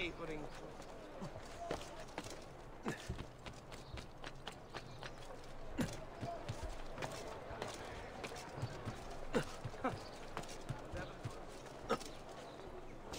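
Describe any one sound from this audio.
Footsteps thud and scrape quickly on rooftops and wooden planks.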